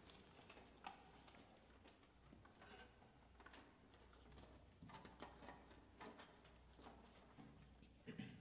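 A saxophone ensemble plays softly.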